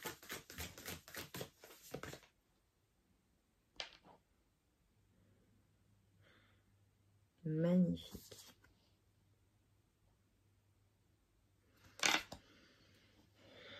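Cards shuffle and rustle in a woman's hands.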